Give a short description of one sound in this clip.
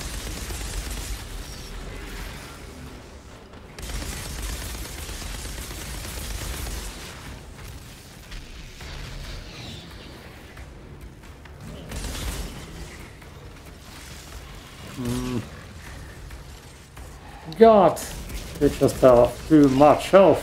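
Energy guns fire in bursts with crackling blasts.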